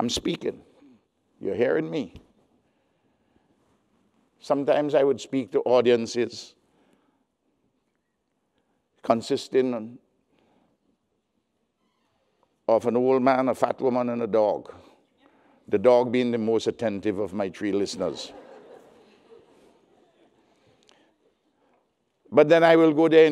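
An elderly man speaks slowly and deliberately through a microphone, with pauses between phrases.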